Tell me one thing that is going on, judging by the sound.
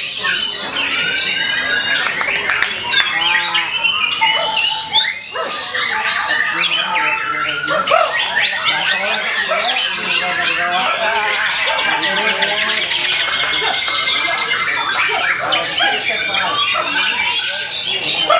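A caged songbird sings loud, rapid, varied phrases close by.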